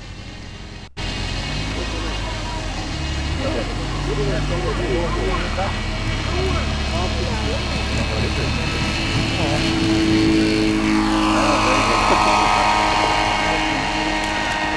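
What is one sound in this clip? A small aircraft engine roars louder as the plane speeds up and takes off.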